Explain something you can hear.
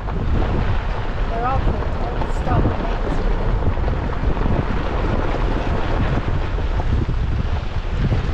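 Strong wind blows and rumbles steadily outdoors.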